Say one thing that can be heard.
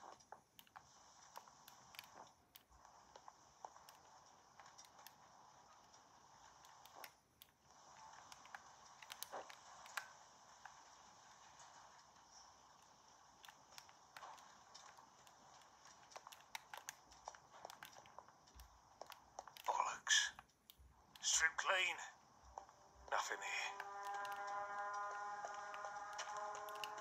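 Game footsteps tap steadily from a small handheld speaker.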